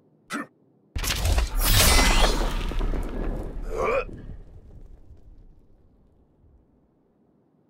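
Flames burst and roar with a deep rumble.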